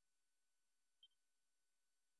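A short, high menu blip sounds once.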